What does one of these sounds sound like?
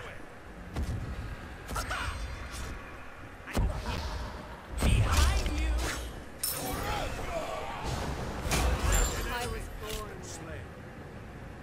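Magic blasts and impacts crackle and boom in a fast fight.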